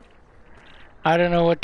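A man says a short word into a microphone, loud and close.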